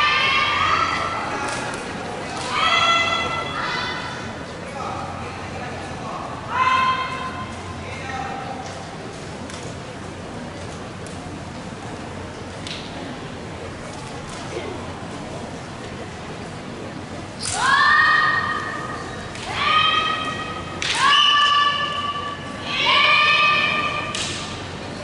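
Young women shout sharp, drawn-out battle cries in a large echoing hall.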